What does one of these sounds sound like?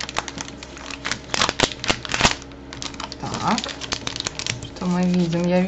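Foil wrapping paper crinkles and rustles as hands unfold it.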